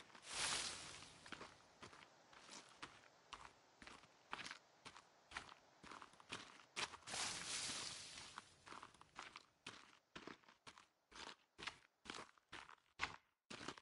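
Footsteps run and rustle through tall grass.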